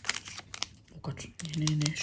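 Fingers brush and crinkle a thin plastic sheet.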